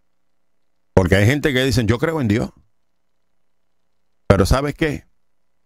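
A middle-aged man speaks close into a microphone in short bursts.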